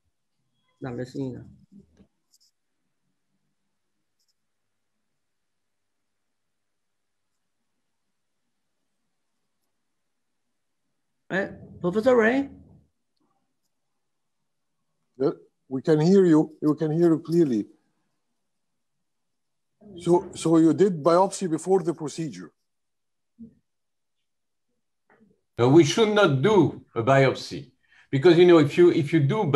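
A man speaks calmly over an online call, with pauses.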